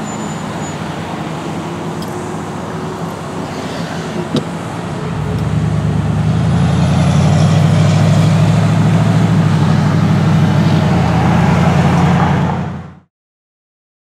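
A car engine hums steadily from inside the car and grows louder.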